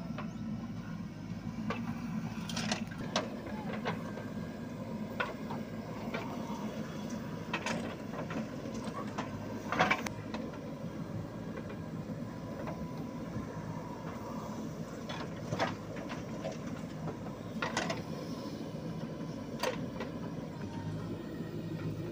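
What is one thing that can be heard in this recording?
A diesel engine rumbles steadily nearby.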